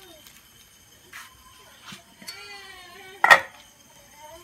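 A metal pot lid clanks as it is lifted off.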